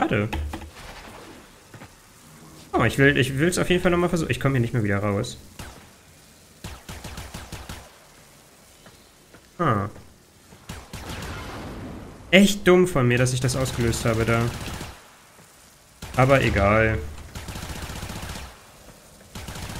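A laser gun fires in short buzzing bursts.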